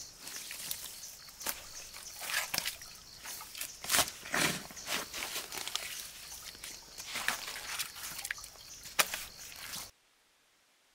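A shovel chops and scrapes into wet mud.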